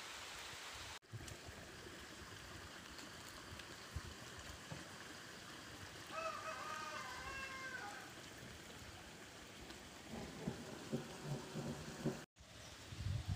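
Muddy water flows and gurgles across the ground.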